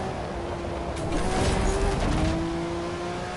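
Tyres skid and scrape over gravel.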